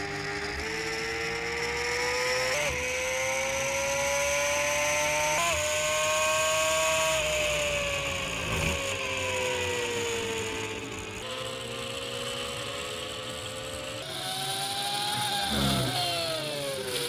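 A racing motorbike engine whines loudly at high revs, rising through the gears and dropping as it slows for bends.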